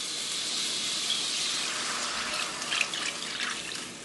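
Liquid pours into a hot pan and hisses.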